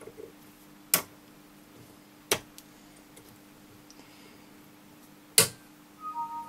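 Small cutting pliers snip through plastic with sharp clicks.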